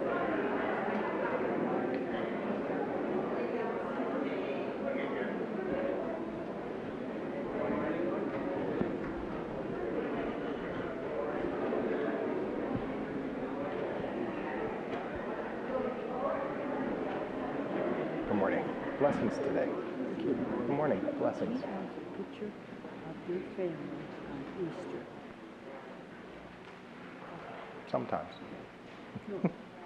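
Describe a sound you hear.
A crowd of men and women chatters and greets one another in a large echoing hall.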